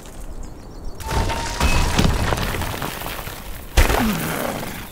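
Rocks crash and tumble apart with a loud burst.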